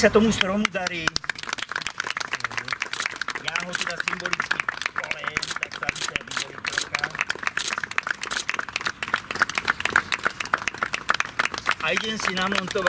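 A woman claps her hands rapidly.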